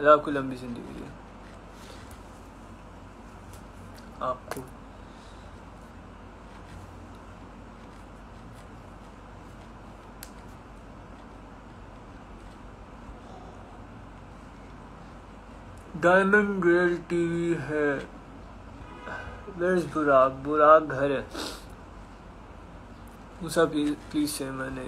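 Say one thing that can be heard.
A young man talks casually and close by, with pauses.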